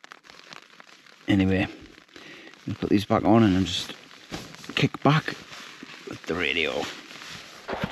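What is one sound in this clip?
Fabric rustles as a hand handles thick gloves.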